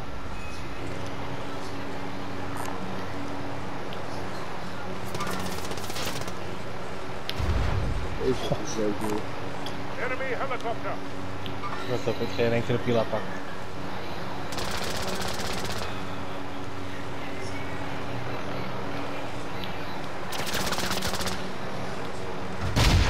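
A helicopter's rotor thumps and its turbine whines in flight.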